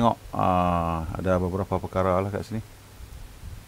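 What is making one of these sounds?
A man speaks through a headset microphone over an online call.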